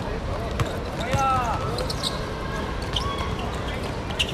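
Sneakers squeak on a court surface.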